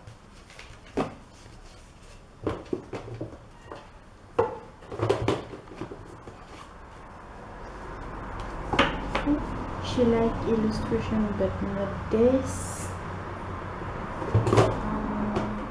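Things are handled and knocked on a table nearby.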